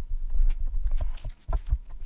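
A knife cuts through a block of cheese on a wooden board.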